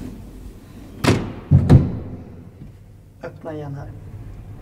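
A wooden folding gate slides shut with a clatter.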